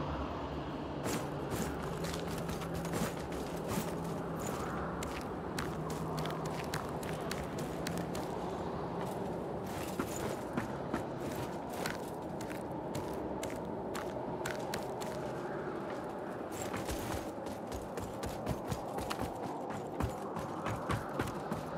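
Footsteps in armour thud and clank.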